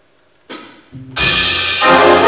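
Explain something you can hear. A jazz band of horns, drums and piano plays loudly in a large hall.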